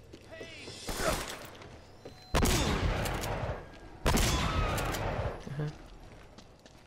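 Gunshots ring out, loud and echoing.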